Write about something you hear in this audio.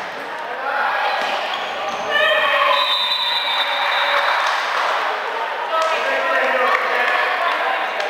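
A volleyball is struck hard during a rally.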